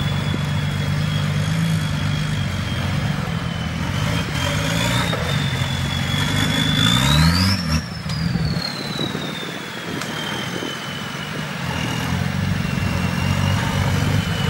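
Tyres crunch and grind over rocks.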